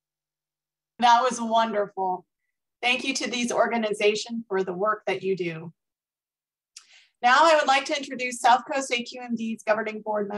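A woman speaks warmly and clearly into a microphone over an online call.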